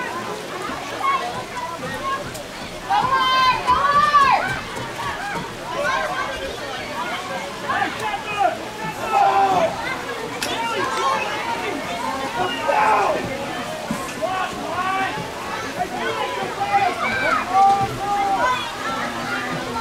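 Children and adults shout and call out across an open field.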